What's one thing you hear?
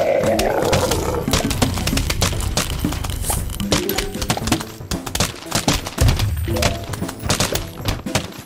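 Plants rapidly fire frozen peas with soft popping shots.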